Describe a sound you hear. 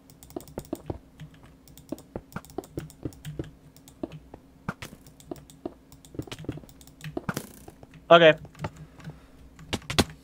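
Blocks are placed with quick, soft clicks.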